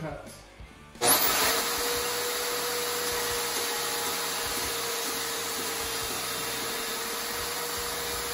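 A band saw runs with a steady whir.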